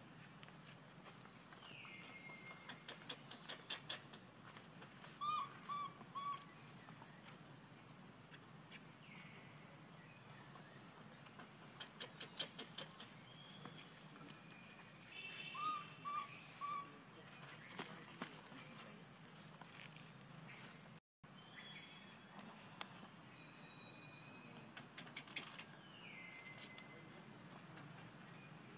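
A young monkey rolls and scuffs on dusty ground.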